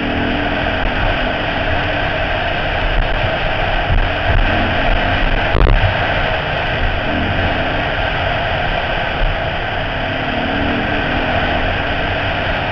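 A motorbike engine drones steadily up close.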